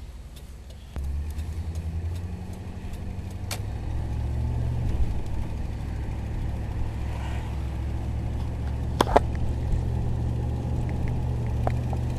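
A car engine revs and pulls as the car speeds up.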